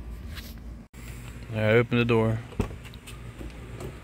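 A car door handle clicks and the door unlatches.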